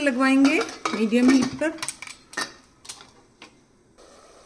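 A metal lid clanks and clicks onto a pot.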